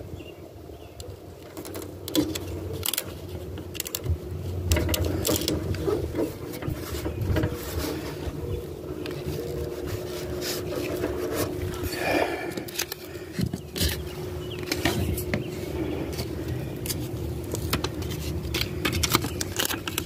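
Sticker backing paper crinkles and peels.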